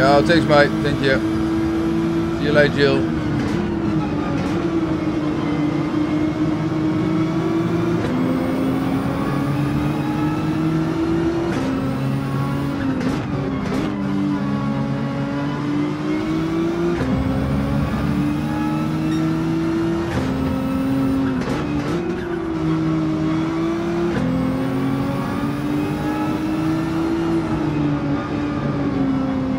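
A racing car engine roars, revving up and down as gears shift.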